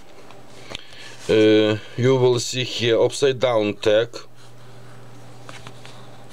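Stiff paper rustles softly as a card is handled.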